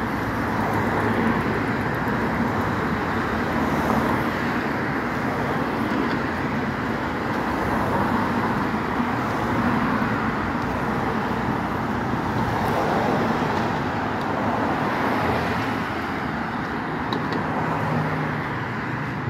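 Cars and trucks rush past close by on a busy road, their tyres roaring steadily.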